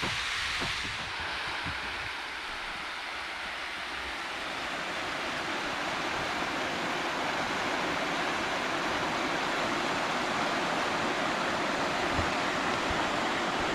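A shallow stream rushes and gurgles over rocks nearby.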